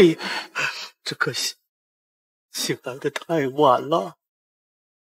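An older man speaks in a low, serious voice.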